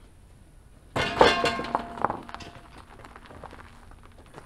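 A hand truck carrying a wooden frame rolls and rattles over concrete.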